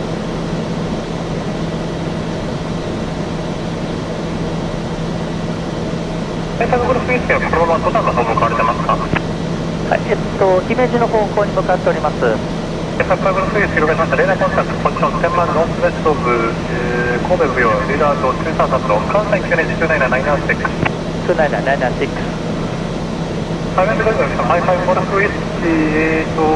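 An aircraft engine drones steadily from inside the cabin.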